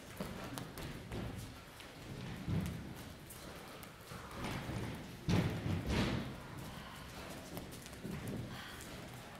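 A crowd of people murmurs in a large echoing room.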